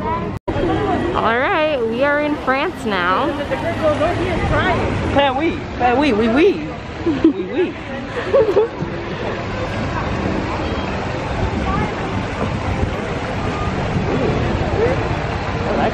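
A crowd chatters all around outdoors.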